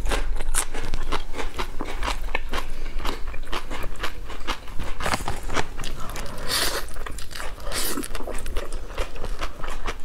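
A young woman chews and smacks her lips loudly, close to a microphone.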